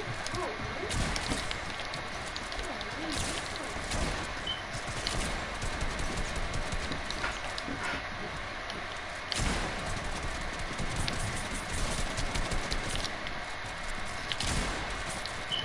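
Shotguns blast in quick exchanges.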